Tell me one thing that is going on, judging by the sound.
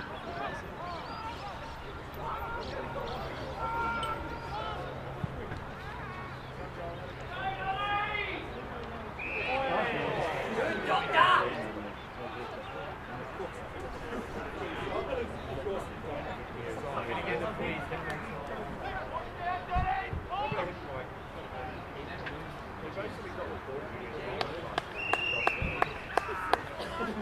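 Spectators shout and cheer outdoors.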